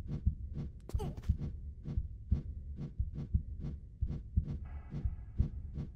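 Hands grab and shuffle along a stone ledge.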